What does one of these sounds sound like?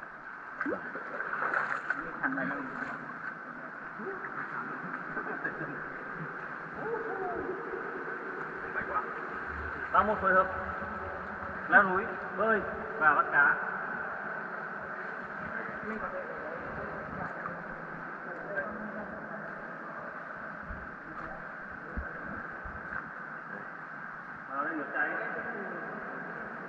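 A man speaks nearby in an echoing space.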